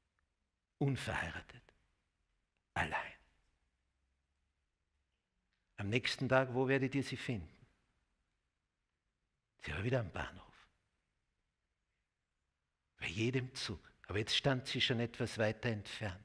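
An elderly man speaks slowly and emphatically into a microphone, with long pauses.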